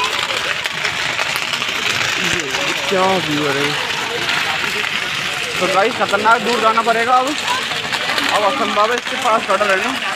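A crowd of young men cheers and chatters loudly outdoors.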